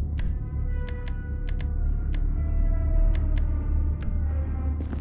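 Short game menu clicks tick one after another.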